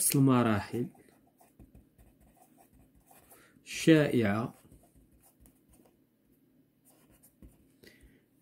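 A marker pen squeaks and scratches across paper.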